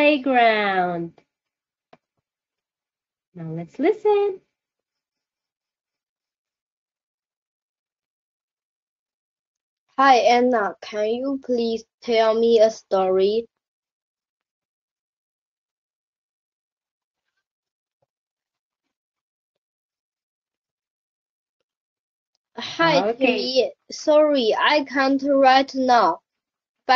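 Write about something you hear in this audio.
A young woman speaks cheerfully and clearly over an online call, in bursts with pauses.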